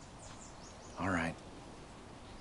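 A man lets out a short grunt.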